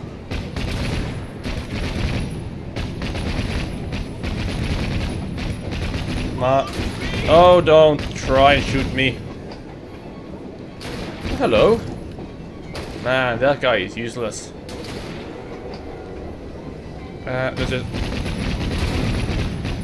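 A mounted gun fires in rapid bursts.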